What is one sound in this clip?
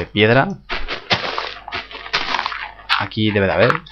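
Dirt crunches repeatedly as a block is dug.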